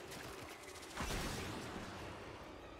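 A blast bursts with a shower of crackling sparks.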